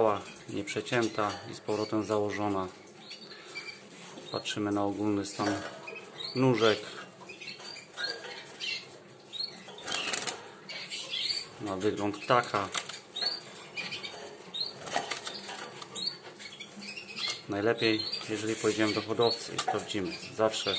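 Small birds chirp and tweet nearby.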